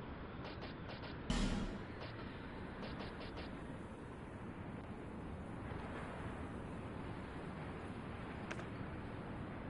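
Soft menu clicks tick in quick bursts.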